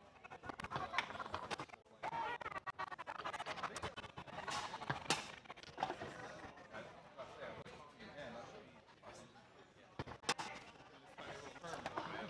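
A foosball ball clacks sharply against the plastic players.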